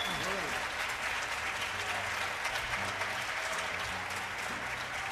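Acoustic guitars play together on an amplified stage.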